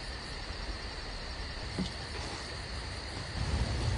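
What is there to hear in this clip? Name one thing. A car door creaks.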